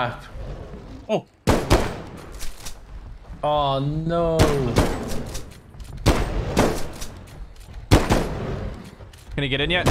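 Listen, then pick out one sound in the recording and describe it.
A shotgun fires with sharp, loud blasts.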